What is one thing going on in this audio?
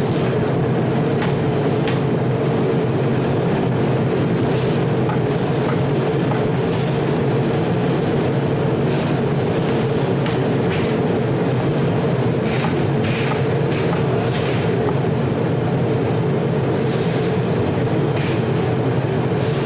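A metal rod scrapes and clinks against the furnace rim.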